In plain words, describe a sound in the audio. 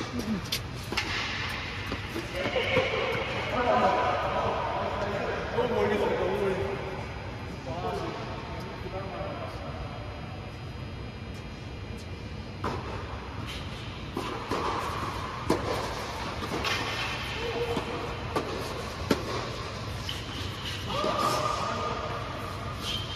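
Tennis rackets hit a ball with sharp pops that echo through a large hall.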